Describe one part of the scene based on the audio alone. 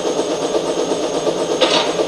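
A helicopter's rotors thump overhead.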